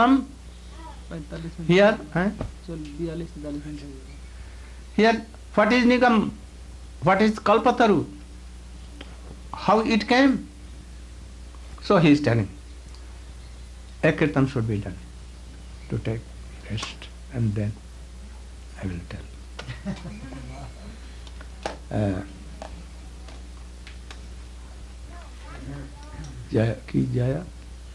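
An elderly man speaks calmly and slowly into a microphone, with pauses between phrases.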